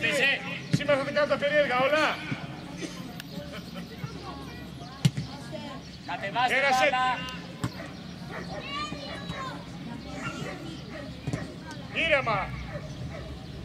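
Children shout loudly across an outdoor field.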